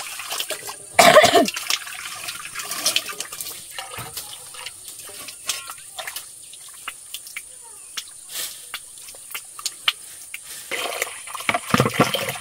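Water splashes and trickles.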